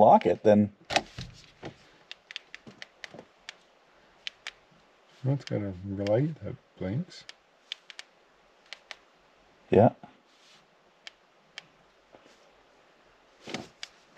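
Plastic parts click and snap under a hand's work.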